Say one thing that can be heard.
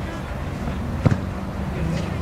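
A football thuds off a kick.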